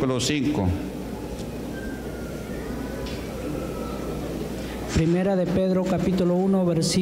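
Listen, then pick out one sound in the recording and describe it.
A man reads aloud loudly through a microphone in a large echoing hall.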